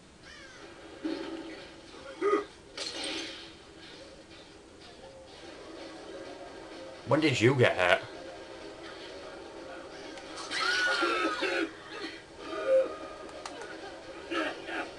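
Video game sound effects play in bursts through a television speaker.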